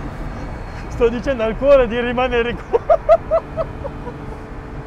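A man exclaims excitedly close by.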